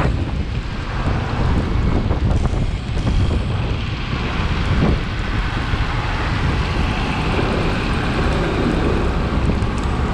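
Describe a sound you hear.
Cars drive along a busy city road.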